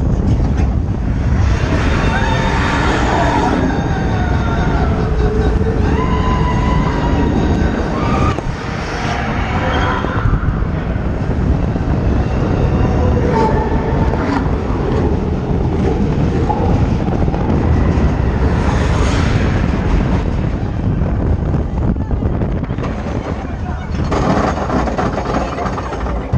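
A roller coaster rumbles and rattles loudly along its track.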